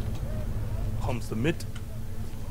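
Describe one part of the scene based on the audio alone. A young man speaks briefly and calmly into a microphone.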